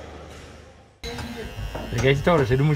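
Electric hair clippers buzz close by.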